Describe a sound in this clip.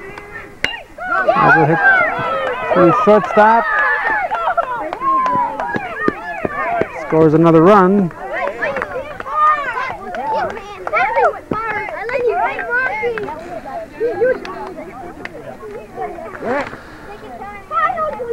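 Children shout and cheer outdoors.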